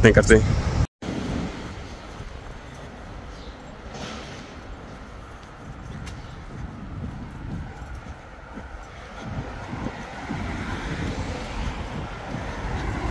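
Footsteps tread on pavement.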